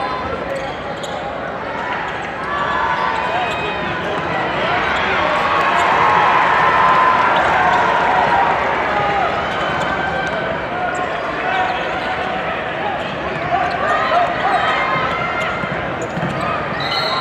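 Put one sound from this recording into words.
A large indoor crowd cheers and chatters, echoing through a big arena.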